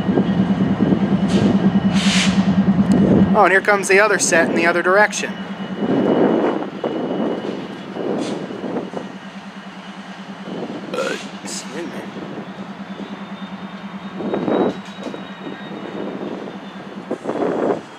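Steel wheels squeal and clank on rails as a locomotive rolls slowly.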